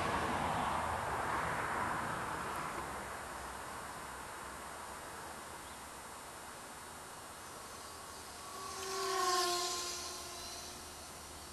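Wind rushes steadily past a small model plane gliding low outdoors.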